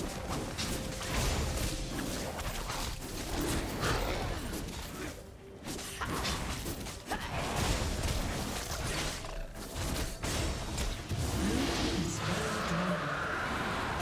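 Magic blasts and sword impacts crackle and thud in a fantasy battle.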